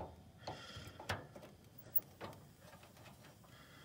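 A knob on a heater clicks as it is turned.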